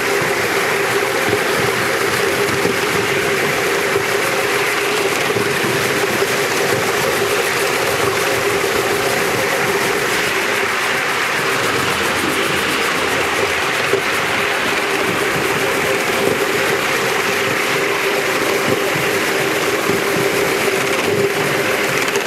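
Metal wheels clatter and rumble over rail joints.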